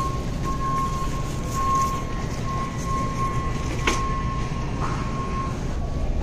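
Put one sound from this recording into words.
A shopping cart rolls and rattles over a hard floor.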